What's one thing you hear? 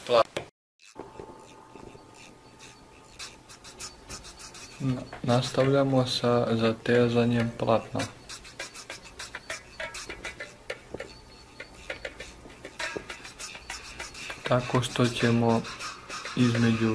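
A hammer taps on nails.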